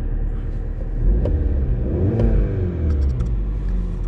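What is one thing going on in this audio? A car engine revs up briefly and settles back.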